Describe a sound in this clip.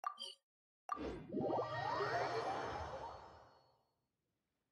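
A shimmering whoosh rises and fades.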